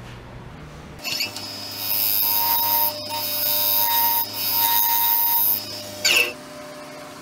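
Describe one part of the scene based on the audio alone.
A gouge cuts spinning wood with a loud, rushing hiss.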